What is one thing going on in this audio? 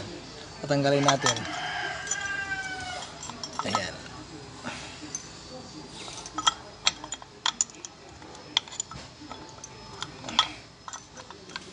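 Metal parts clink and tap as they are handled.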